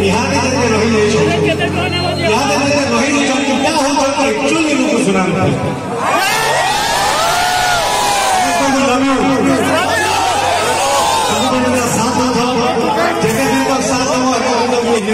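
A man sings loudly into a microphone over loudspeakers.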